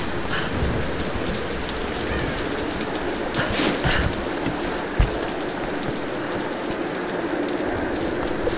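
Footsteps crunch on dirt and stone.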